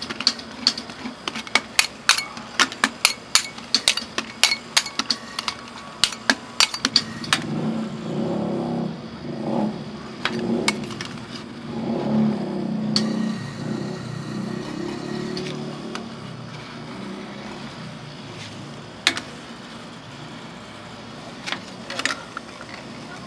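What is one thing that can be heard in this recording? A metal scraper taps and scrapes sharply against a steel pan.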